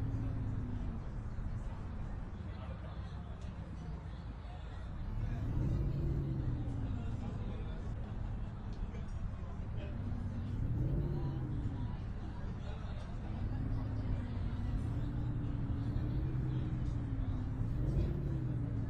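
A bus engine hums low and rises and falls in pitch as the bus drives.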